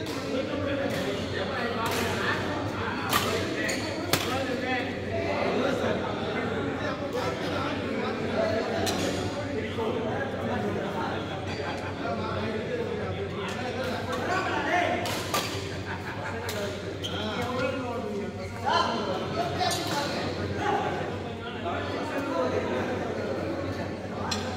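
Men talk and call out across the hall.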